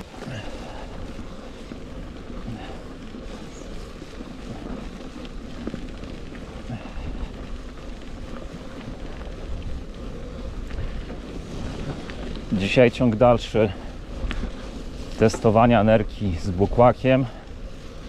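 Bicycle tyres roll and crunch steadily over a dirt track.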